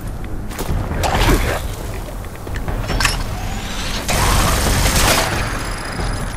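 An energy gun fires in bursts.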